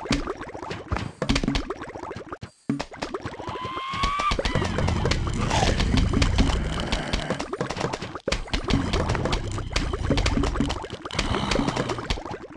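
Quick cartoon popping shots fire over and over.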